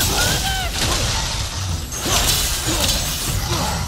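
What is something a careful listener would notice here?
A giant creature's heavy footsteps thud and rumble.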